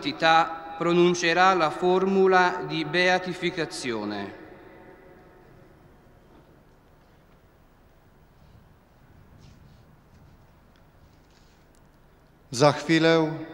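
A man chants a sung prayer through loudspeakers in a wide open space.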